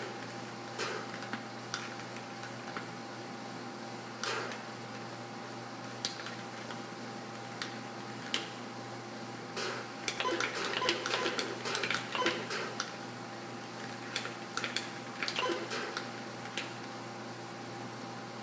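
Atari 2600 game sound effects beep and buzz through a television speaker.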